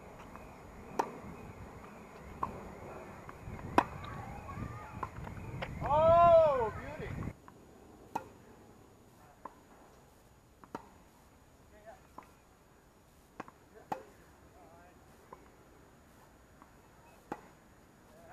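A tennis ball is struck sharply by a racket, again and again.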